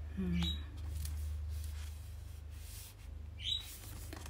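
Cards rustle and flap as they are shuffled by hand.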